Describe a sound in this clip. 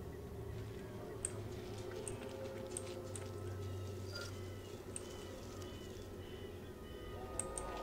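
Footsteps tread softly on grass.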